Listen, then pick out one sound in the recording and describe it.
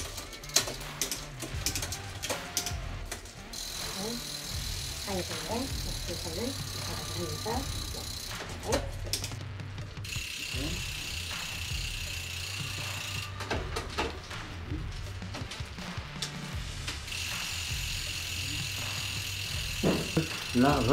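A bicycle wheel spins with a steady ratcheting buzz from its hub.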